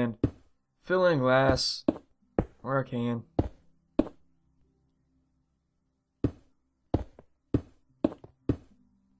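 Wooden blocks are placed with short, hollow knocks.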